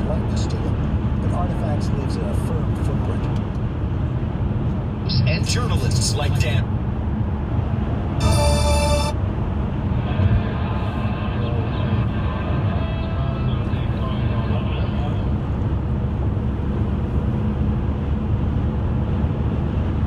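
A car's engine and tyres rumble steadily on a highway from inside.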